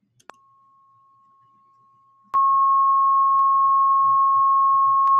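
A steady high-pitched test tone hums, quiet at first and then suddenly much louder.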